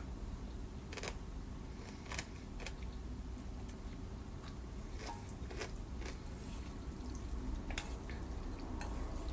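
Chopsticks clink against a metal bowl.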